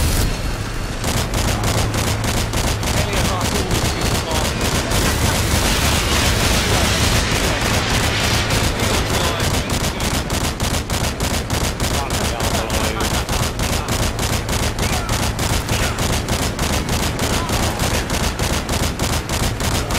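A heavy cannon fires in rapid, steady bursts.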